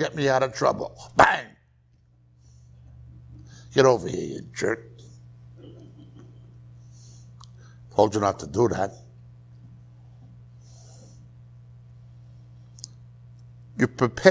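A middle-aged man speaks slowly in short bursts, reading out.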